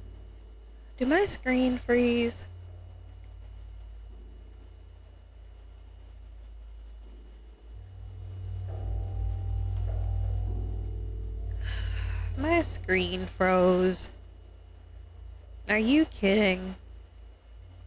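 A young woman speaks close to a microphone in short, animated bursts.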